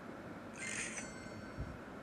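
A bright game chime rings out briefly.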